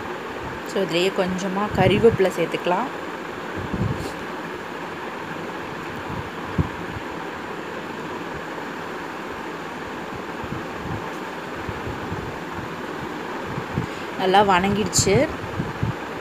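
Food sizzles softly in hot oil.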